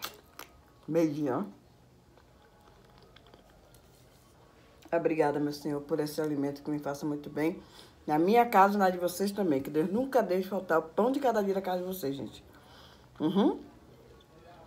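A middle-aged woman speaks with animation close to the microphone.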